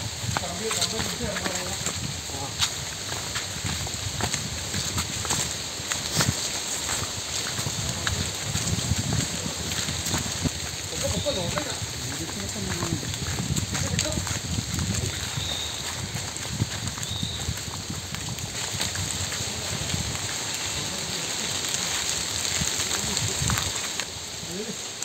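Footsteps crunch on dry leaves and twigs along a path.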